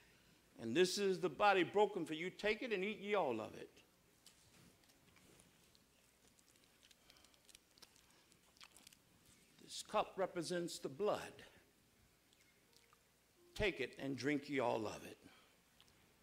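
A man speaks solemnly through a microphone.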